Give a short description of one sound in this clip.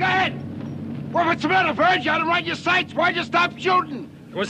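A middle-aged man shouts with animation.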